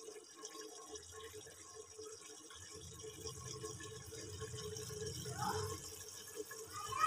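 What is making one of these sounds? Liquid bubbles and simmers in a pot.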